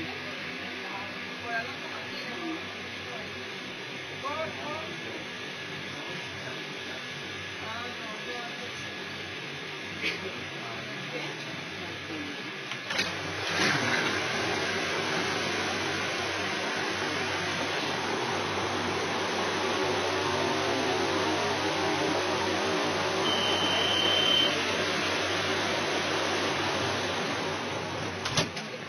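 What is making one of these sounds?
A subway train rumbles and rattles steadily.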